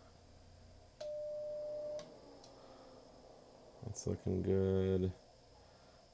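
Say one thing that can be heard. A radio sends out steady beeping tones.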